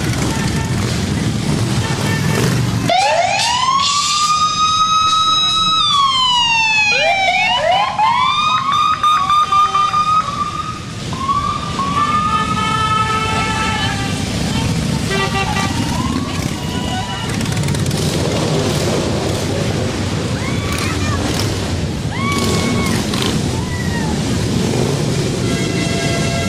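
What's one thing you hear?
Many motorcycle engines rumble and roar as they ride past.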